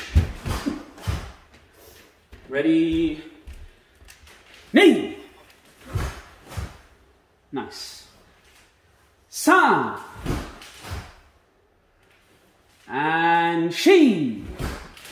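Bare feet thump and slap on a wooden floor.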